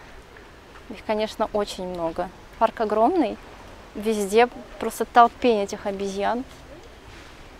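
A young woman talks calmly close by.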